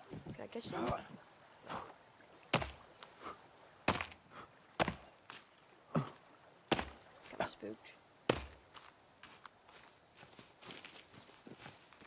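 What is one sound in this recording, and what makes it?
Footsteps thud steadily on grass and dirt.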